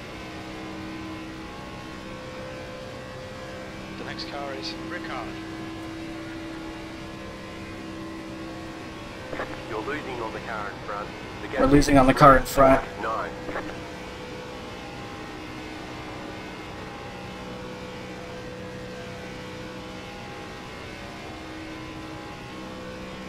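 A race car engine drones steadily.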